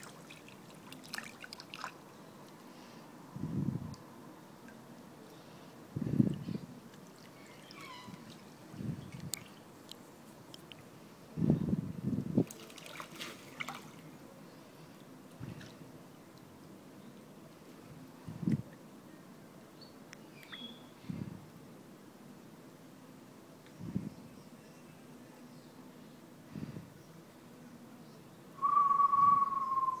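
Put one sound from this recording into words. Water sloshes and laps as a floating body is moved through a pool.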